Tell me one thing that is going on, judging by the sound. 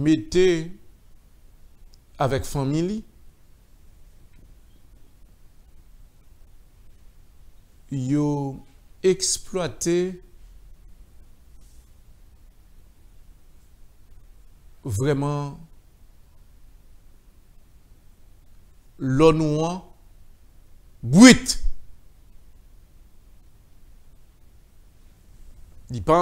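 A man speaks calmly into a microphone, in short phrases with long pauses.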